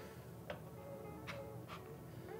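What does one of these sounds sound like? A cup clinks as it is set down on a metal tray.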